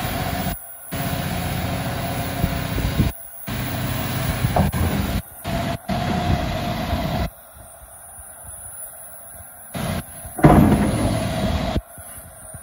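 A large diesel engine rumbles loudly nearby.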